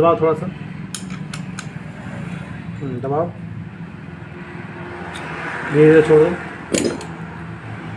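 Metal tools clink and tap against an engine part.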